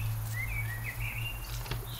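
A car door handle clicks and the door opens.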